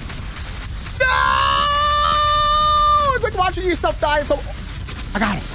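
A young man shouts a long, loud yell into a close microphone.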